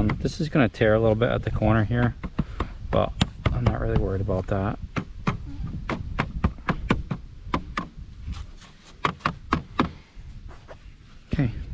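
A hand roller presses and rubs over a rubbery roofing sheet with soft taps.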